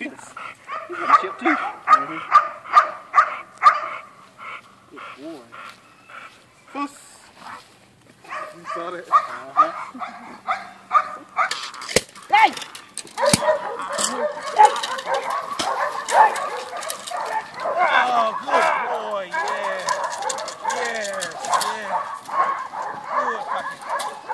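A dog barks sharply and repeatedly close by.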